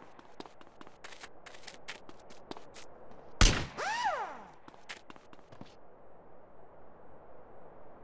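Footsteps thud steadily on dirt.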